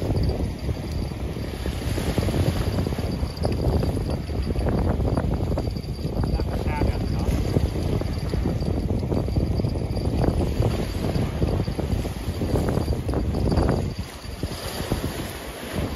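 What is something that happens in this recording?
Wind blows hard, buffeting the microphone outdoors.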